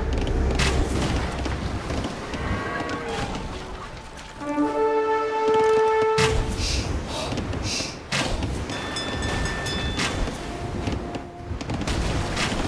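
Ship cannons boom repeatedly in a sea battle.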